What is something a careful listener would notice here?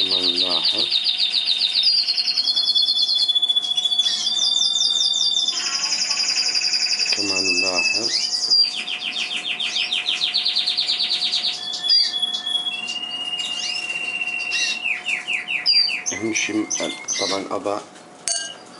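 Baby birds cheep loudly and shrilly in rapid trills up close.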